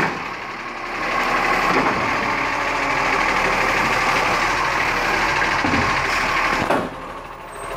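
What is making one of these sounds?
A truck's hydraulic arm whirs as it lifts a bin.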